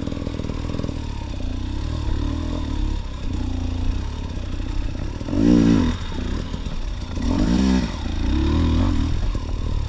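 A dirt bike engine revs and sputters up close, rising and falling in pitch.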